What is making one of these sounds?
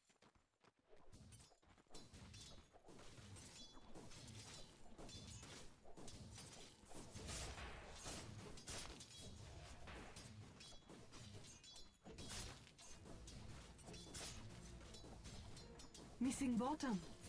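Fantasy game combat sounds clash and thud as characters fight.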